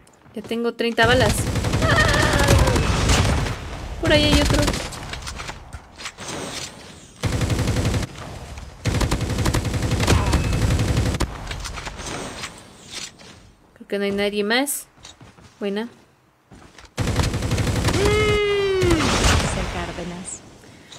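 Game sound effects play in bursts.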